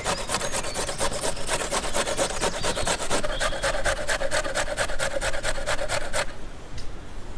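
A metal grater rasps rapidly as a carrot is grated.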